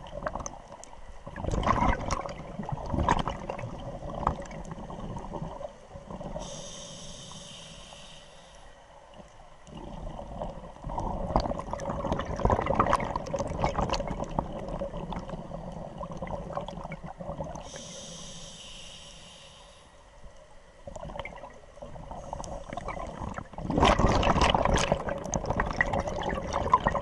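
Scuba bubbles rush and gurgle loudly underwater in bursts.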